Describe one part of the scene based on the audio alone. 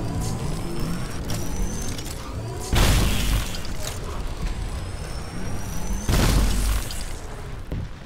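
A heavy energy weapon fires with loud roaring blasts.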